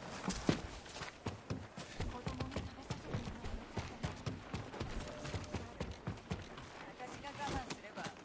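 Footsteps thump on wooden stairs and floorboards.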